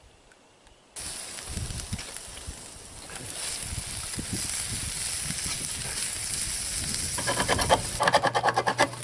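Meat sizzles on a grill over a fire.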